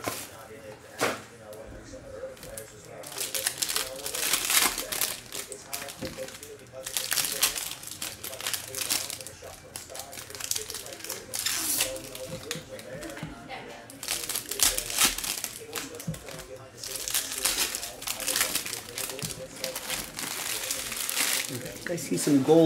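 Trading cards shuffle and slap softly onto a stack.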